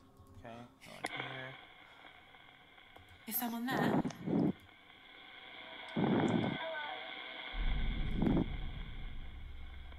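A radio device hisses with steady static.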